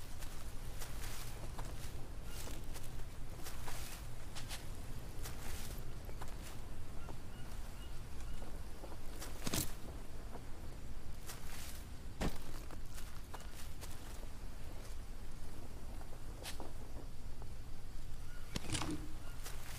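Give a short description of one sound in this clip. Footsteps rustle through dense, leafy undergrowth.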